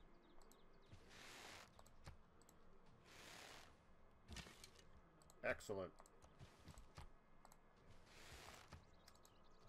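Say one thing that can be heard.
Volleys of arrows whoosh through the air.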